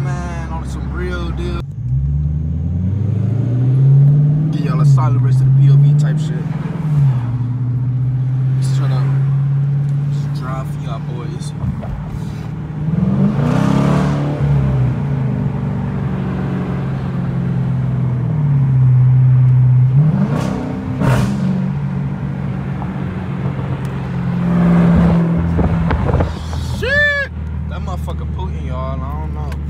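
A powerful car engine rumbles and revs up and down loudly.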